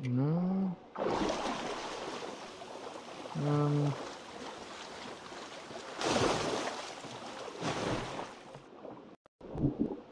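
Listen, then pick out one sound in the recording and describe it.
Water splashes and churns as a swimmer moves along the surface.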